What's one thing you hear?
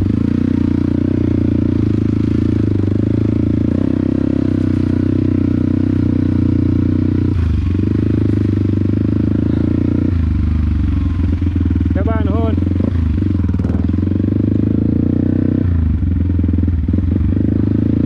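A motorcycle engine drones up close, rising and falling in pitch as the rider shifts and throttles.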